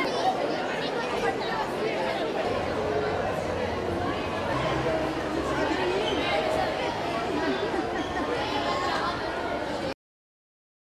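A large crowd of children and adults chatters in a large echoing hall.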